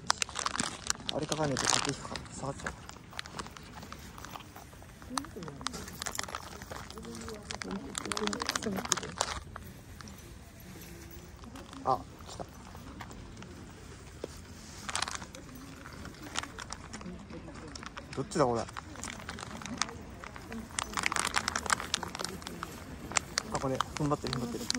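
Footsteps scuff on a paved path.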